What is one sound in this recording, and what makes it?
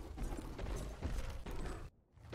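A magical burst crackles and whooshes.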